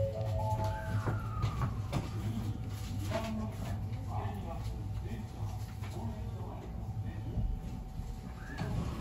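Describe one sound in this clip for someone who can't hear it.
A train rumbles along the tracks and slows to a stop.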